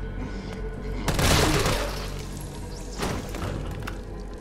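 Gunshots ring out loudly.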